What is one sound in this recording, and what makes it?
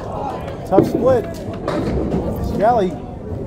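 A bowling ball thuds onto the lane and rolls.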